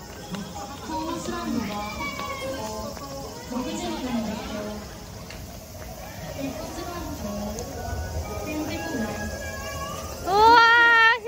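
A young child chatters nearby.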